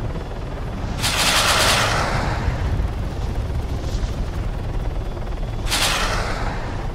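Rockets fire with loud rushing whooshes.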